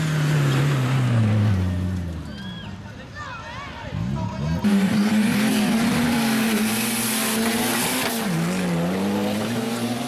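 Tyres spin and spray loose dirt.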